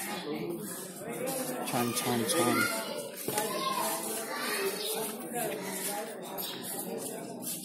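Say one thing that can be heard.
Several women talk casually nearby.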